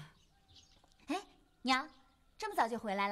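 A young woman answers brightly nearby.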